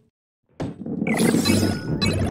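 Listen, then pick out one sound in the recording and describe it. A coin pickup chimes brightly.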